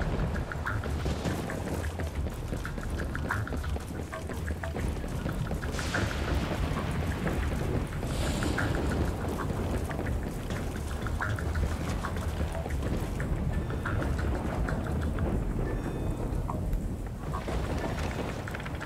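Footsteps tap quickly on a hard metal surface.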